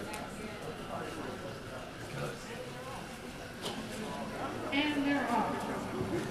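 A crowd of people chatter in a large echoing hall.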